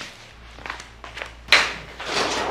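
Footsteps pass close by.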